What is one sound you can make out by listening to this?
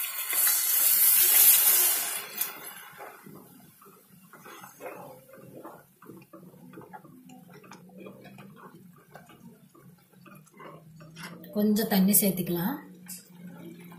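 A spoon stirs and scrapes through a thick stew in a pot.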